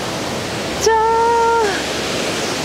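A woman exclaims loudly nearby.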